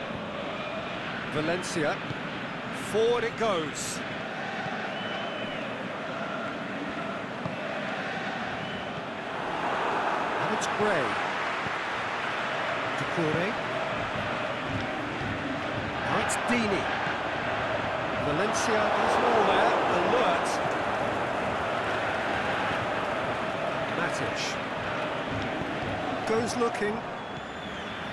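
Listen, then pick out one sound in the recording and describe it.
A stadium crowd roars and chants steadily, swelling at times.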